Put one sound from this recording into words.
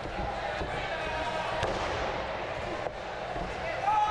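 A wrestler slams down onto the ring mat with a loud thud.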